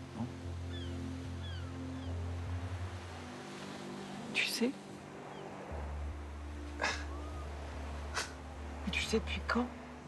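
A woman speaks earnestly, close by.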